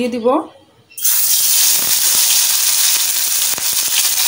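A fish sizzles loudly as it fries in hot oil.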